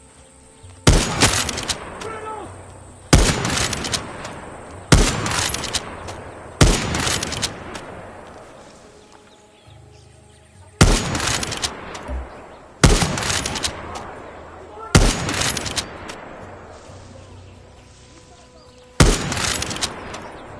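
A heavy rifle fires loud shots that echo away outdoors.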